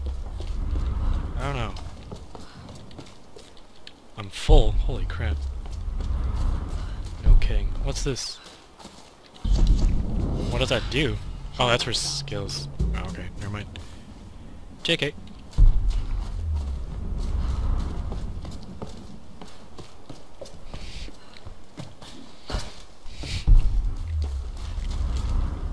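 Footsteps crunch steadily over leaves and rough ground.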